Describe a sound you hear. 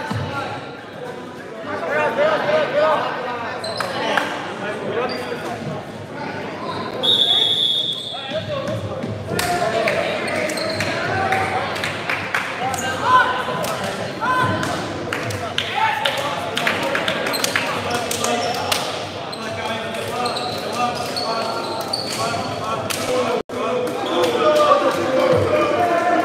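Many boys and young men chatter and call out in a large echoing gym.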